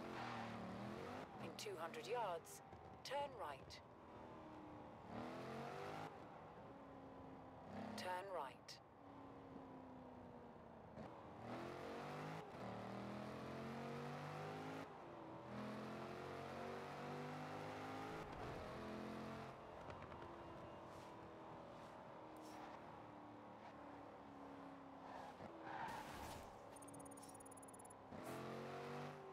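A car engine revs and roars as it speeds up through the gears.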